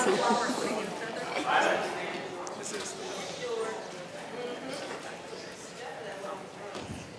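Music plays in a large echoing hall.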